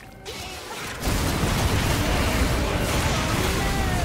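Magic blasts and clashing weapons crackle in a busy game battle.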